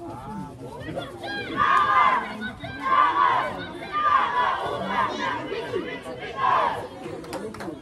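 A group of young girls shouts a chant together.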